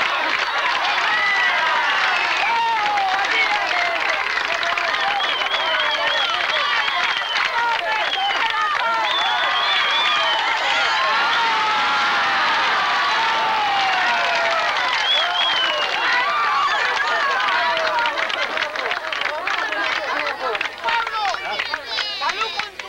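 A crowd of men and women shouts and cheers loudly close by.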